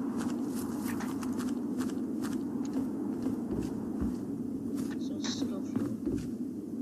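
Footsteps tread quickly and steadily on the ground.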